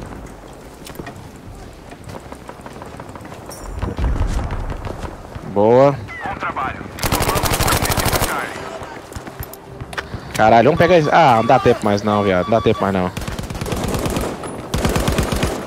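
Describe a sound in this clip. Rifle shots crack in short, sharp bursts.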